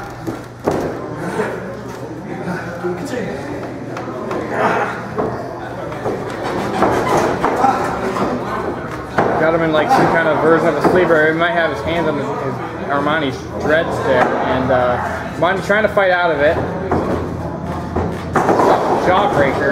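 Men's voices talk and shout in a large echoing hall.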